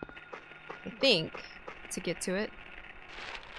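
A young woman speaks casually into a close microphone.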